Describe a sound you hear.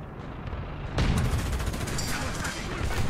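An explosion bursts and crackles.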